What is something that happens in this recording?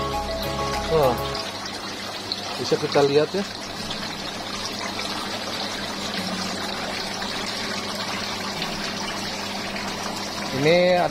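Thin streams of water splash steadily into a pool of water.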